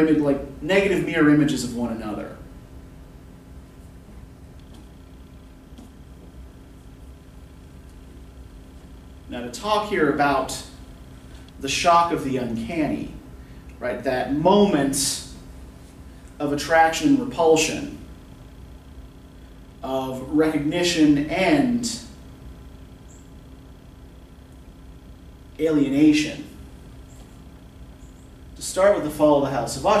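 A middle-aged man speaks with animation nearby, pausing often.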